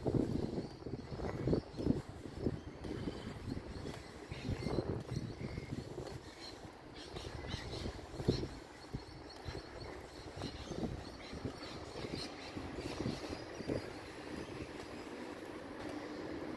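Wind blows across an open outdoor space.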